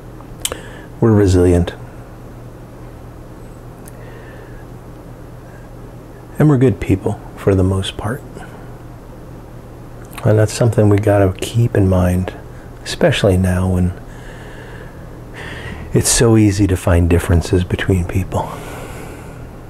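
A middle-aged man speaks calmly and close to a microphone, in short bursts with pauses.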